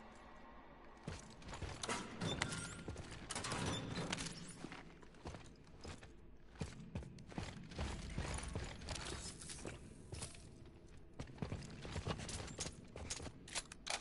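Heavy armoured footsteps clank on a metal floor.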